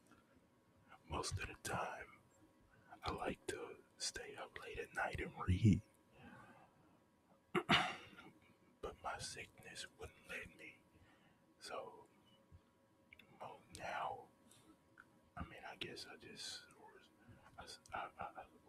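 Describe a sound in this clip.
A man speaks calmly and close into a microphone.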